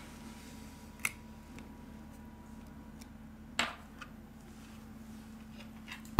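A phone's back cover snaps free and is set down on a table.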